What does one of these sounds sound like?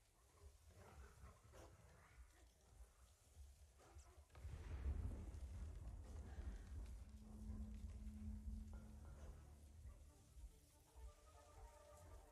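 Tall grass rustles softly as someone creeps through it.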